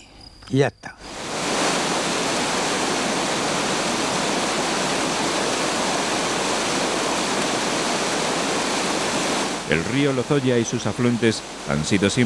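White water rushes and roars loudly.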